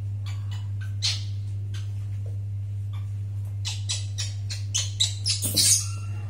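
Baby monkeys squeak shrilly.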